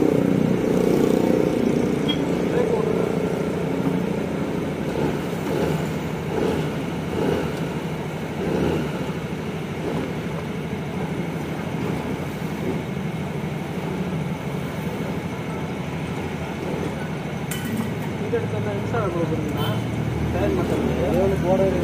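Hands press and rub against a rubber tyre.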